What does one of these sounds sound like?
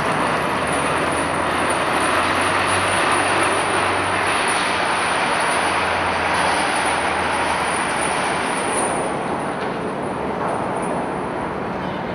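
Tracks of amphibious assault vehicles clatter across a steel deck.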